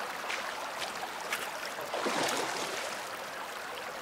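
A shallow stream rushes and gurgles.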